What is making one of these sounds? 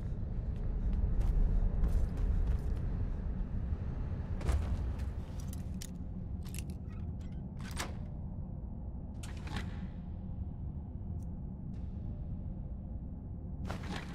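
A low rumbling drone hums steadily.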